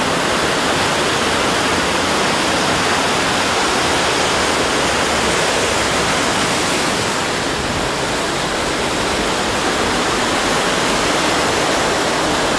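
Water pours down in heavy falls and splashes loudly onto stone nearby, roaring steadily.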